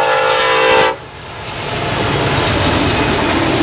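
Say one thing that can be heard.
Freight cars clatter over steel rails.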